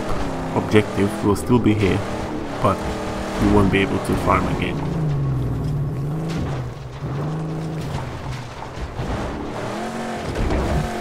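A car engine roars and revs.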